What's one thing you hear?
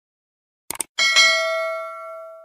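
A bell chimes and rings out.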